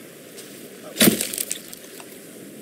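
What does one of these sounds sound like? An axe strikes into a carcass with a wet thud.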